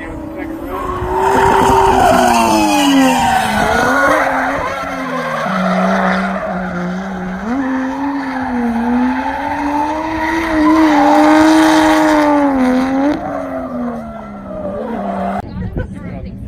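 A car engine roars loudly, revving up and down as the car drifts past.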